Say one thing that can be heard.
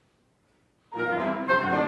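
A small chamber ensemble begins to play in a hall.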